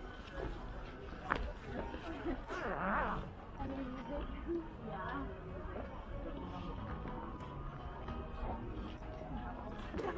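Voices of a crowd chatter at a distance outdoors.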